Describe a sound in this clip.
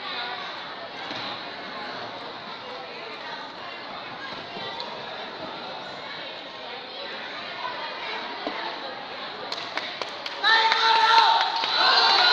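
An audience chatters in a large hall.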